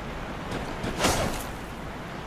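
A blade strikes a body with a heavy thud.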